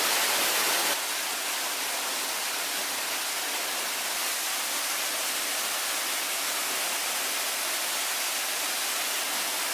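A waterfall roars steadily nearby.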